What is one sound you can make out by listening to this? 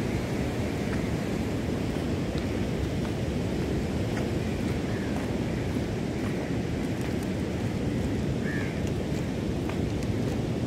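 Strong wind blows steadily outdoors, buffeting the microphone.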